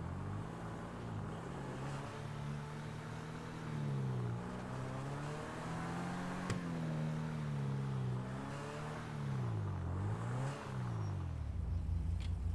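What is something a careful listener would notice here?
A sports car engine roars and revs up and down as the car drives.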